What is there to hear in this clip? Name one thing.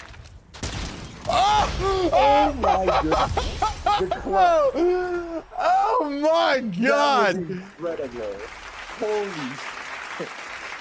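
A man shouts excitedly into a microphone, close up.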